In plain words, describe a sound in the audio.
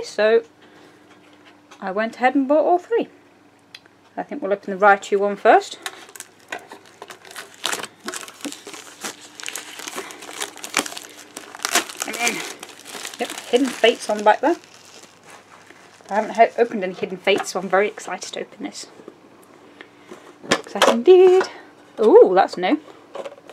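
A metal tin knocks and rattles as it is picked up and handled.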